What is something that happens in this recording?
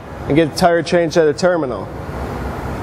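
A young man speaks calmly and clearly close by.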